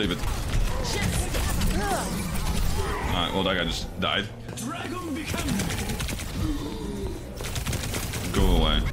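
Gunfire and game effects blast from a video game.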